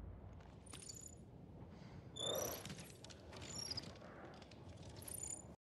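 Metal armor jingles and clinks as a warrior moves.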